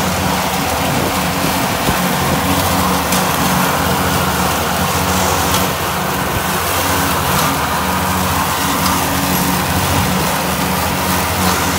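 A mower's blades whir and swish through tall grass.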